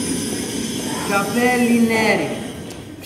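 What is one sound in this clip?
A man speaks with animation, projecting his voice.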